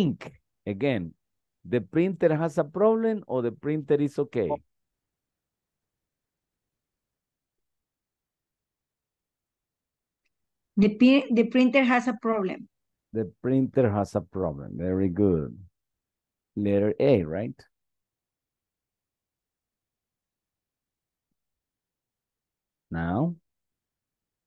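A man speaks calmly over an online call, in short bursts with long pauses.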